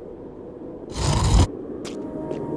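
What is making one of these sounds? A game figure lands with a thud after a jump.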